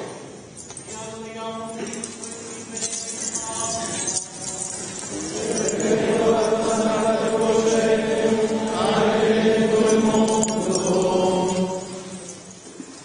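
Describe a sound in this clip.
Men sing together in a slow chant, echoing in a large hall.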